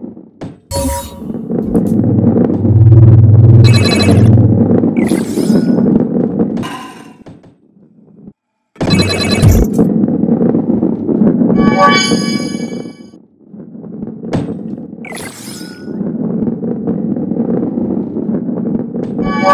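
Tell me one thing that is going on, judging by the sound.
A ball rolls along a wooden track with a low rumble.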